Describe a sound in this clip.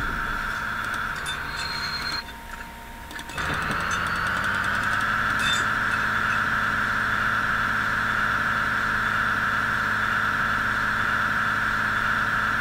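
A diesel train engine hums steadily.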